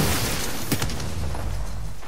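A weapon clicks and clanks as it reloads.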